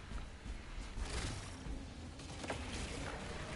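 Electric energy crackles and zaps.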